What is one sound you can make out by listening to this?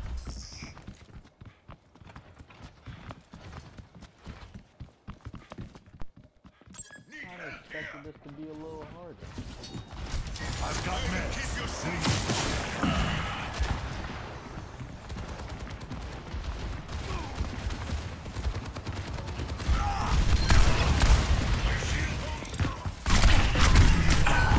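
Game pistols fire in rapid bursts.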